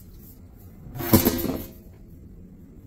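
A metal panel scrapes as it is pulled off.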